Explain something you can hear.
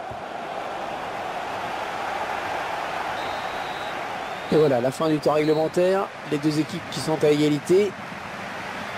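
A large stadium crowd murmurs and chants steadily in the distance.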